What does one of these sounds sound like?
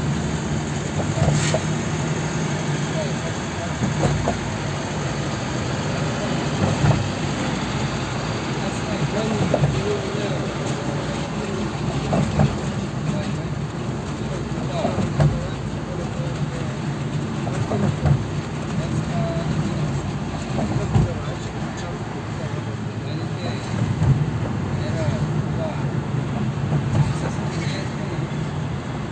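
Tyres roll steadily on the road.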